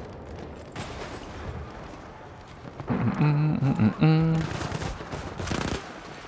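Footsteps crunch over rubble and dirt.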